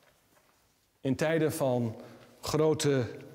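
A congregation sings together.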